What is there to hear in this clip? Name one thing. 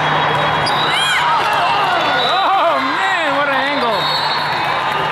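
Young women players shout and cheer on the court.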